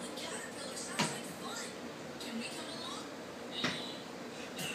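A broom knocks against a hard floor.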